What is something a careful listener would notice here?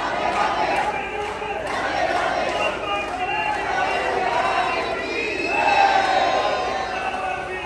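A large crowd of men and women chants and cheers in an echoing courtyard.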